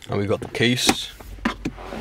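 A hand brushes against a fabric seat.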